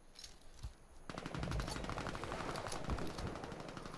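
A gun is swapped with metallic clicks.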